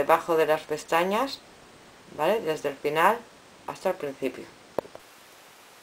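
A woman speaks calmly and close to the microphone.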